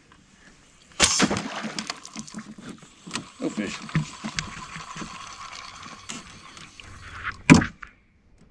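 A fishing reel whirs steadily as line is wound in.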